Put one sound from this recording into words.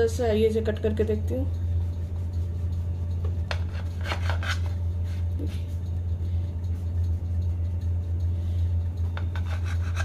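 A knife saws through a soft loaf of bread.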